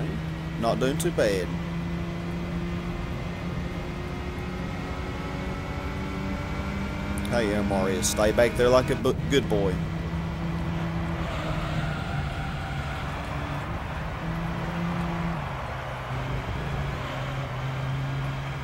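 A racing car engine hums steadily at high revs, dropping in pitch as gears change.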